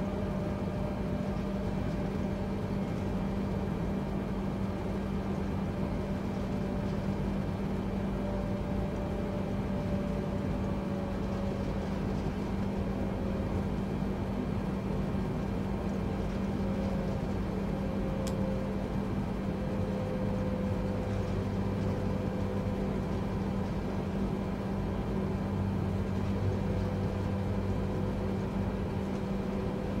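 Jet engines hum steadily as an airliner taxis.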